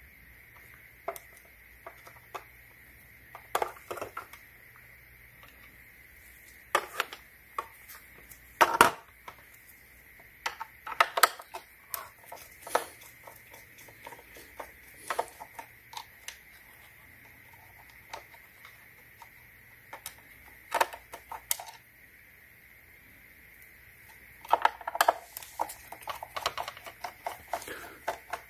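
A screwdriver clicks and scrapes against hard plastic.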